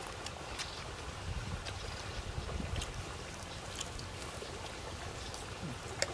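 A man chews food noisily up close.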